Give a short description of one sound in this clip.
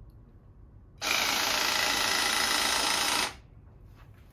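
An electric motor whirs steadily, then stops.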